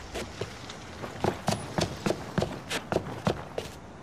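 Footsteps tap on hard pavement at a steady walking pace.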